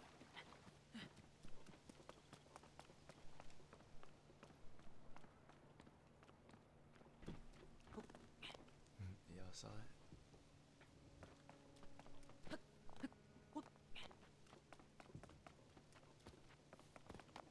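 Footsteps tap on stone steps.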